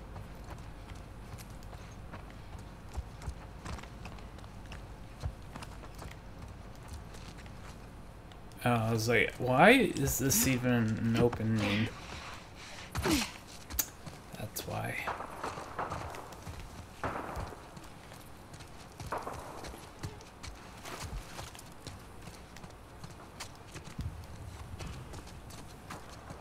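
Footsteps patter on a hard floor and then on grass and wet ground.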